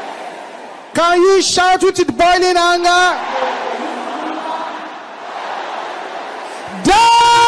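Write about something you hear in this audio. A man speaks forcefully through a microphone.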